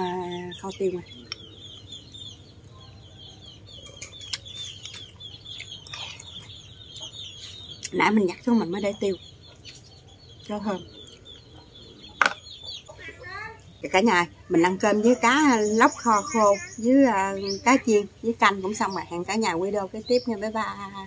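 A young woman talks to the listener close up, with animation.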